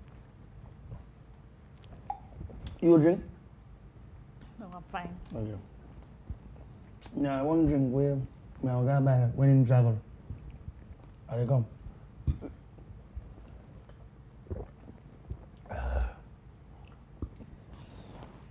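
A young man sips and gulps a drink.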